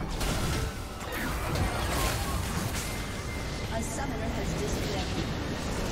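Magic blasts and impacts crackle in a fast game battle.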